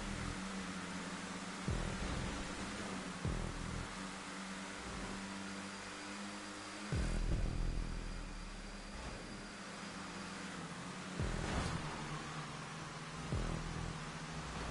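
Race car engines roar steadily at high speed.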